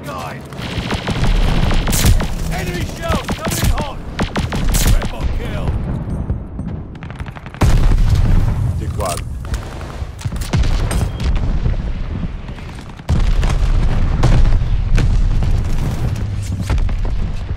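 Rifle shots crack loudly, one after another.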